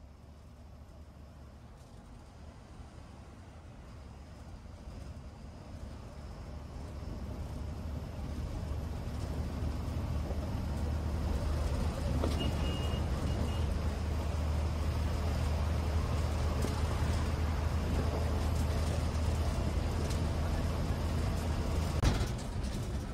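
A bus engine hums steadily as the bus drives along a road.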